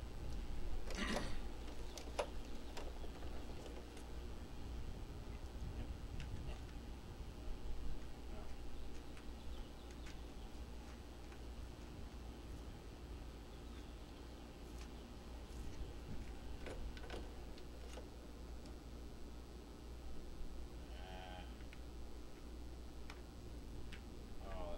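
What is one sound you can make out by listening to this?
A plastic cassette clicks and rattles in someone's hands.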